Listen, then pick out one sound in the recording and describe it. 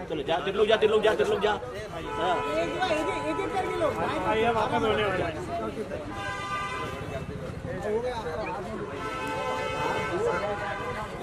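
Several men talk and call out loudly close by, in a lively crowd outdoors.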